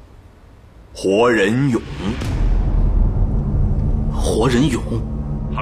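A man speaks into a phone with an emphatic, wavering voice.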